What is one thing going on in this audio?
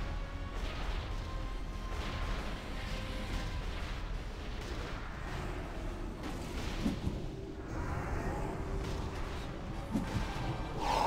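Magic spells whoosh and crackle in a busy battle.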